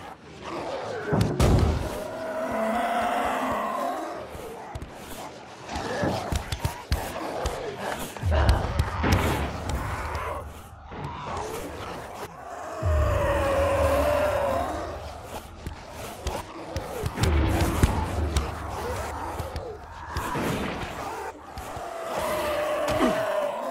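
Heavy blows thud and smack against a body.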